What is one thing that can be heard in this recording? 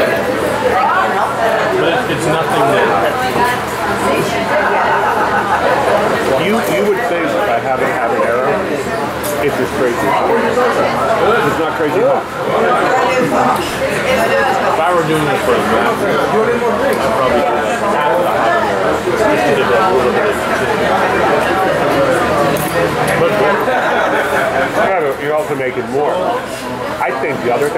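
Many people chatter at once in a lively room.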